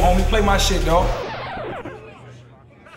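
A man raps loudly into a microphone.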